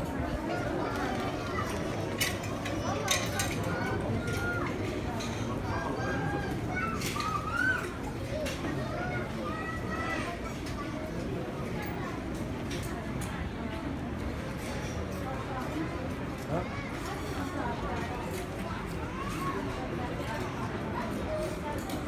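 A crowd of men and women chatter in a low murmur nearby.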